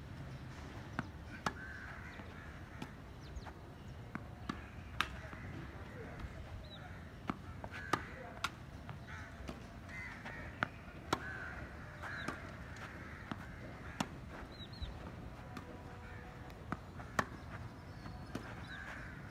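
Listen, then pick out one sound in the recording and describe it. A tennis racket strikes a ball with sharp pops, over and over.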